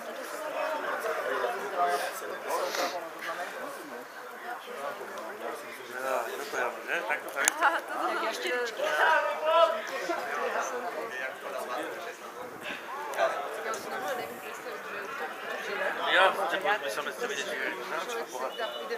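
Footballers shout to each other in the distance across an open field.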